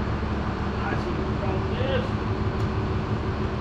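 Metal parts clink as a man works on a hub.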